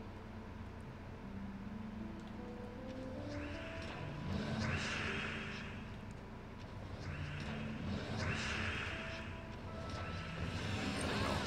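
A video game plays a light melody.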